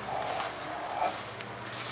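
Feet shuffle and rustle through straw.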